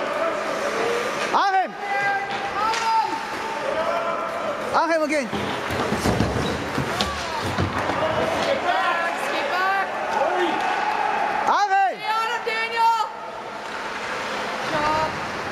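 Skates scrape and carve across the ice.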